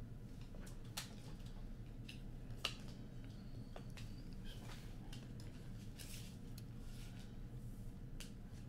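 Playing cards snap and slap onto a table close by.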